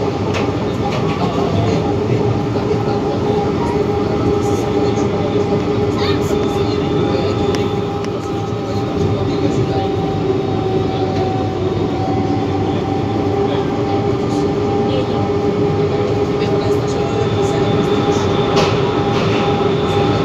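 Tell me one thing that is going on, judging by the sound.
The electric motors of a VAL metro train whine in steady tones.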